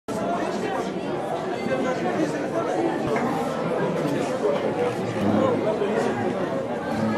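A crowd of men and women chatters in a busy echoing hall.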